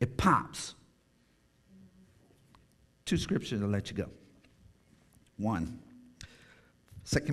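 A man speaks slowly and calmly through a microphone in a large echoing hall.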